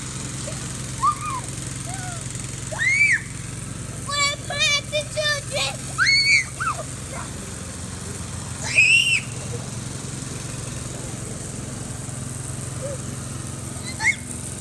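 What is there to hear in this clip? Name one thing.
Young girls shriek and call out playfully outdoors.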